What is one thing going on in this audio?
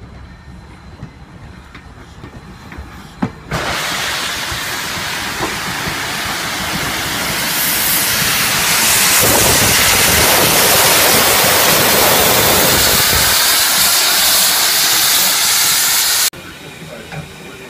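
A steam locomotive rolls slowly past close by.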